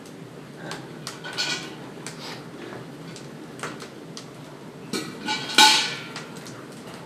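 A metal bucket clanks and bumps.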